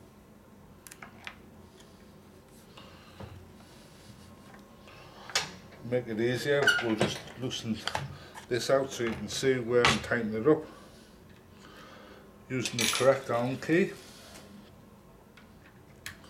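Metal lock parts click and clatter as they are handled.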